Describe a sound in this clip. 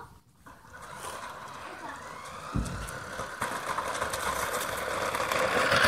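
A toy car's electric motor whirs loudly close by.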